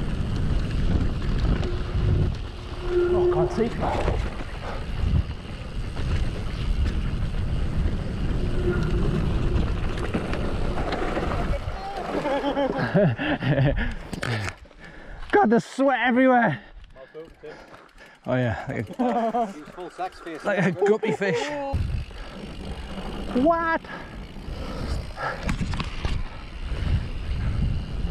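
Bicycle tyres rumble and rattle over rough grass and dirt.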